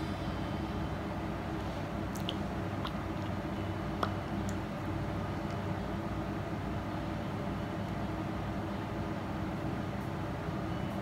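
A lipstick taps and rubs softly against lips.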